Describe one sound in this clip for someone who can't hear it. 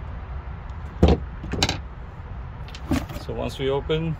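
Small metal and plastic parts rattle and clink as hands sort through them.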